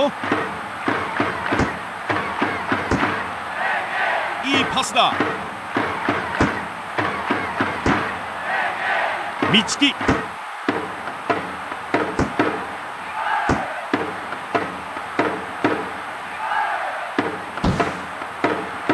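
A football is kicked again and again with short, dull thuds.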